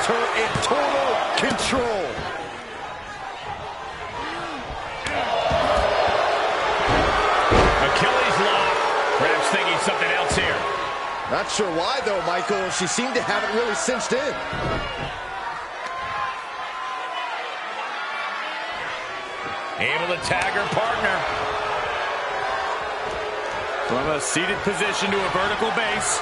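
Wrestlers' bodies thud heavily onto a ring mat.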